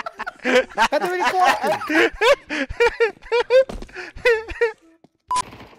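A young man laughs loudly and heartily close to a headset microphone.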